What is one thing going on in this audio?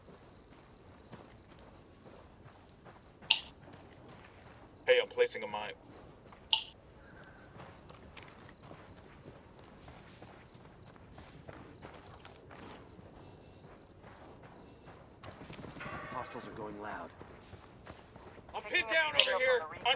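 Footsteps rustle through dry brush.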